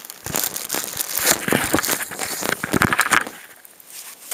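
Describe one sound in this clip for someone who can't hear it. Plastic and gear rustle and knock loudly close by.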